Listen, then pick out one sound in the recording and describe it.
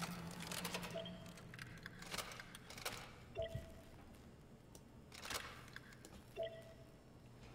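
A card reader gives short electronic beeps.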